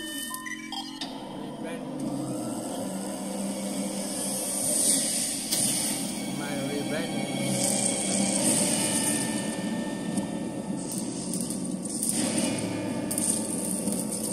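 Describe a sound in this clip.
A loud hiss of steam rushes through a small phone loudspeaker.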